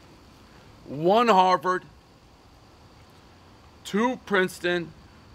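A man speaks expressively and close by, in short bursts.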